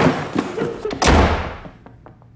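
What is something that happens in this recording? A door slams shut with a heavy thud.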